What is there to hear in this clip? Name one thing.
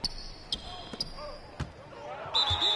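Sneakers squeak on a basketball court.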